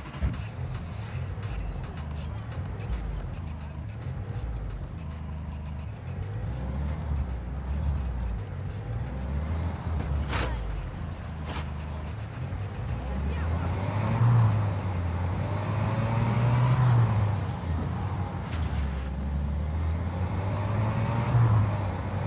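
A pickup truck engine hums and revs up and down as it drives.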